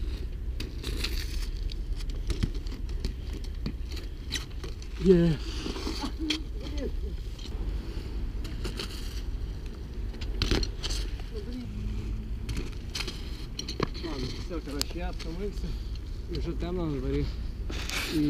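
Bicycle tyres roll over paving stones.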